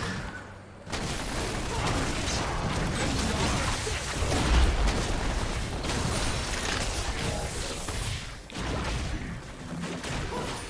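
Video game spell effects crackle and whoosh during a battle.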